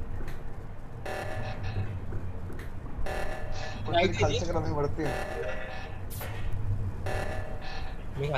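An alarm blares in repeated two-second bursts.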